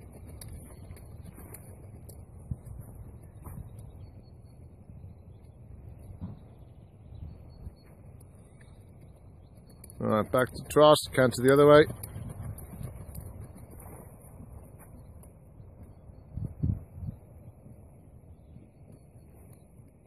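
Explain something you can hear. A horse's hooves thud softly on soft ground as it trots.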